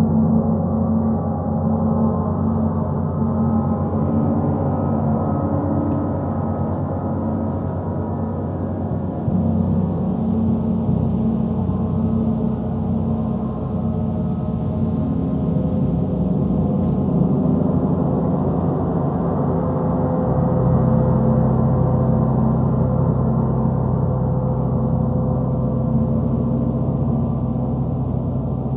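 Large gongs are struck with a mallet, building a rich, sustained humming drone.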